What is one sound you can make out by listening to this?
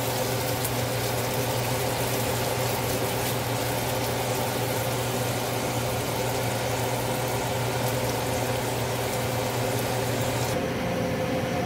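Bacon sizzles and crackles in a hot pan.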